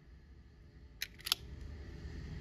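Metal parts of a pistol click sharply as it is handled.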